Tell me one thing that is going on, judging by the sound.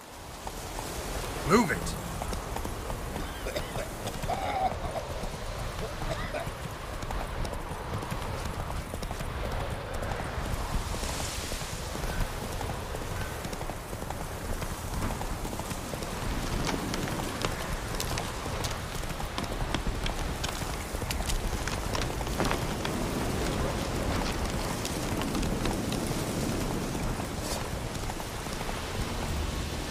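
Hooves clop steadily as a horse gallops.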